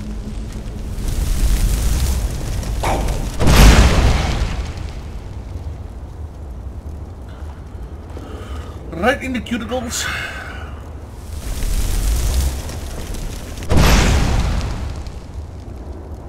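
A burst of fire whooshes and roars loudly.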